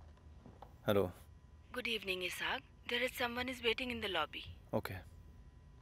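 A young man talks quietly on a phone close by.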